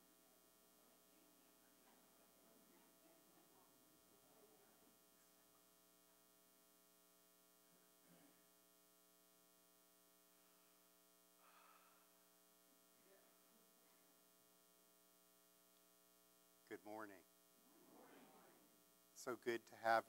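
An elderly man speaks calmly through a microphone in a large, echoing room.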